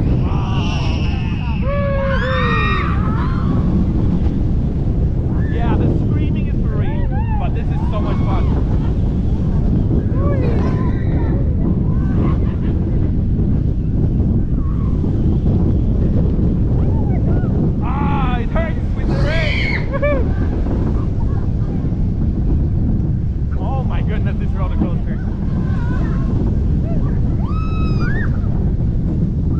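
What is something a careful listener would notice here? Wind roars loudly past at speed.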